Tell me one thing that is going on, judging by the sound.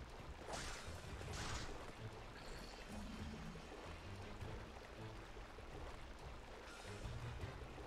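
Water splashes under running footsteps.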